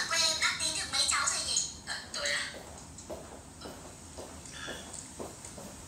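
Footsteps tread across a floor.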